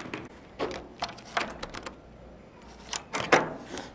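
A key card clicks into a door lock.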